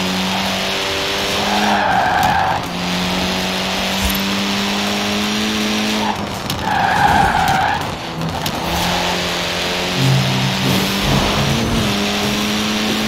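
A rally car engine roars at high revs, dropping briefly with each gear change.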